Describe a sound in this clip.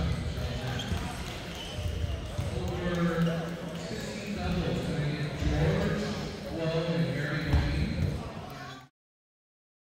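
People chatter in a large echoing hall.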